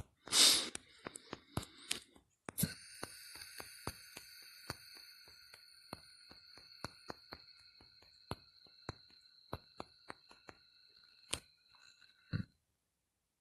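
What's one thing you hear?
Phone keyboard taps click quickly and softly.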